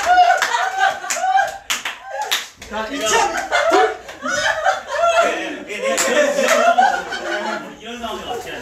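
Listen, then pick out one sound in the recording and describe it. Young men laugh loudly and shout with excitement close by.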